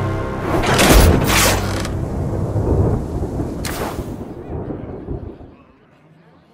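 A rumbling explosion booms and crumbles away.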